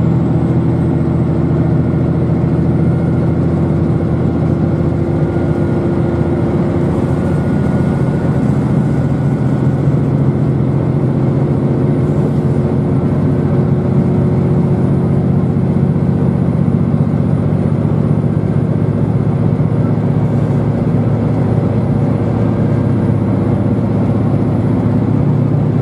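Wheels rumble low and steady on the road.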